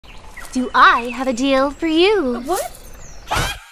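A young woman speaks with animation in a sing-song voice, close by.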